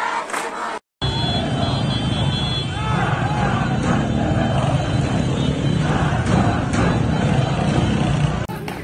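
A large crowd shouts and roars in a street.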